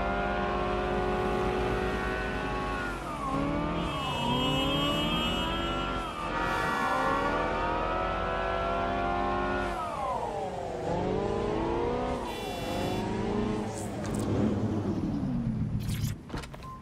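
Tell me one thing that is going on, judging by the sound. A car engine hums and revs up and down as gears change.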